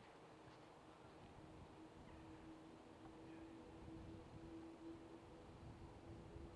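A horse canters over grass with soft, dull hoofbeats.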